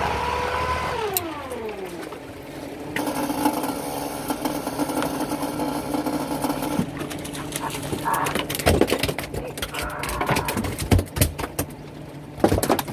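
A motorised winch whirs steadily as it hauls in a line.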